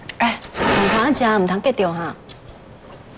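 A woman speaks gently nearby.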